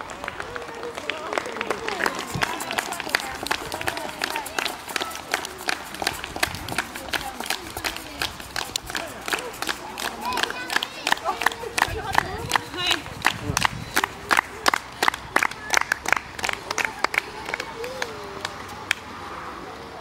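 A crowd claps steadily and quickly, close by.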